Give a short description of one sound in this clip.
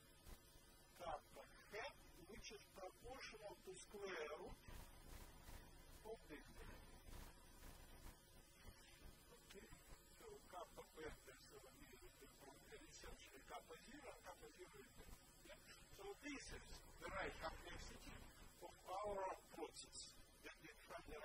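A man lectures calmly, heard through a microphone in a large room.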